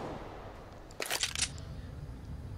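A pistol clicks and rattles as it is drawn and loaded.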